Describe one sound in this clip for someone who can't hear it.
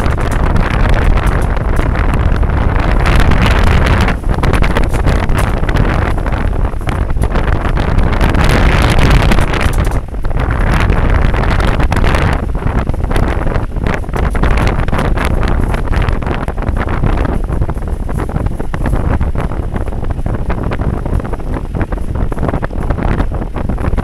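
A vehicle engine rumbles steadily as it drives along.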